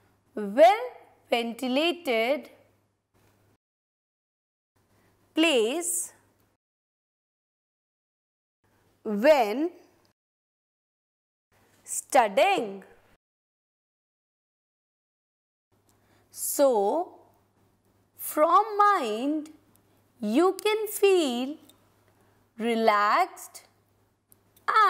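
A woman speaks in short, separate phrases with long pauses, close to a microphone.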